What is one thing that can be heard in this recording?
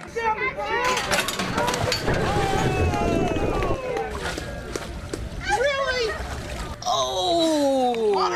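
Water splashes loudly as a man drops into a dunk tank.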